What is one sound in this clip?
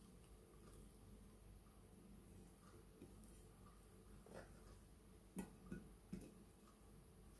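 A fish is lifted and set down on a plate with soft knocks.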